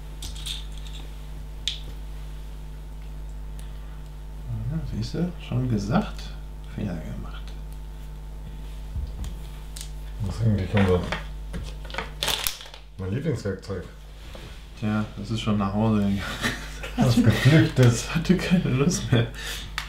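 Small plastic bricks clatter as a hand picks through them.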